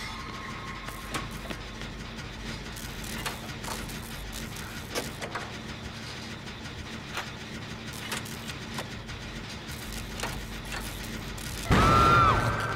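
Metal parts clink and rattle as a machine is repaired.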